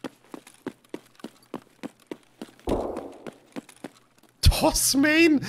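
Footsteps tap at a steady pace.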